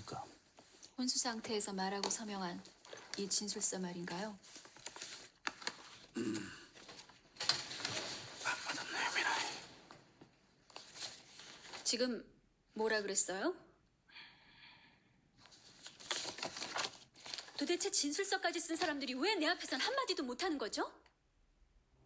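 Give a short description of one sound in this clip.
A young woman speaks sharply and questioningly, close by.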